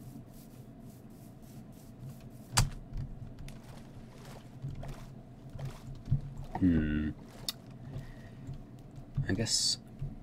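Water splashes softly as a swimmer moves through it.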